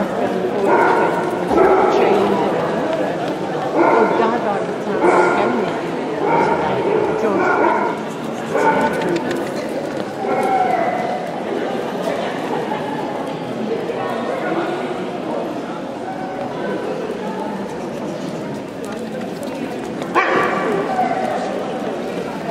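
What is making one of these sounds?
A crowd of men and women chatter nearby in a large echoing hall.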